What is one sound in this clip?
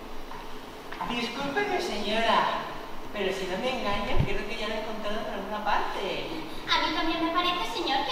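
A young woman speaks in answer on a stage.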